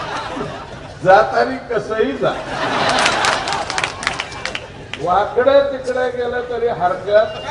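A middle-aged man speaks forcefully into a microphone over loudspeakers, his voice echoing.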